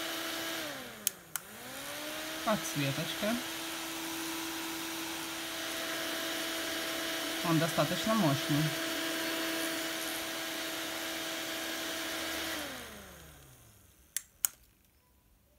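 Buttons on a small fan click.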